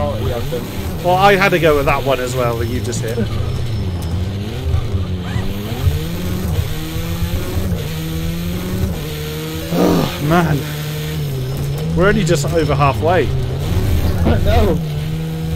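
A racing car engine roars, its pitch rising and falling with gear changes.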